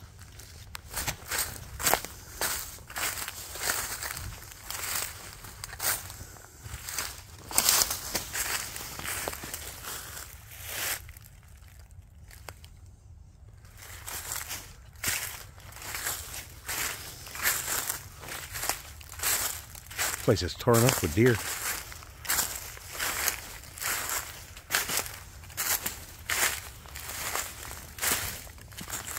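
Footsteps crunch through dry leaves at a walking pace.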